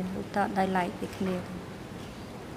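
A middle-aged woman speaks briefly and calmly into a microphone.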